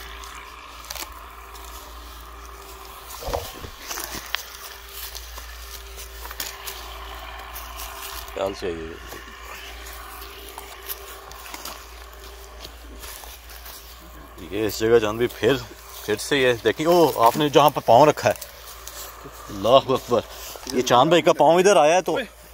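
Footsteps crunch on dry leaves and twigs outdoors.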